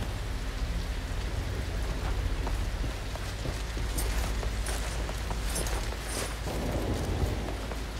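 Footsteps tread on wooden planks.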